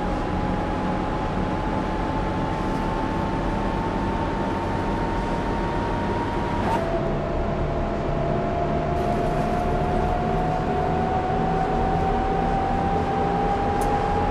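A bus engine drones steadily with a whine that slowly rises in pitch.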